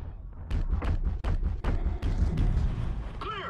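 Gunshots fire in rapid bursts, each with a heavy low thud.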